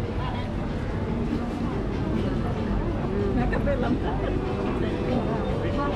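Women chat quietly nearby.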